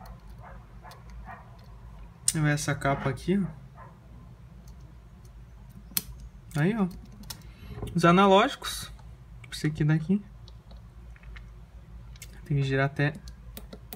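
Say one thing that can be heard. Small plastic parts click and snap together.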